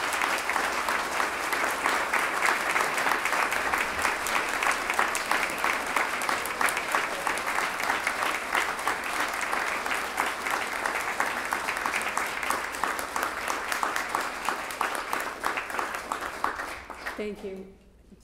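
An audience applauds loudly in a large room.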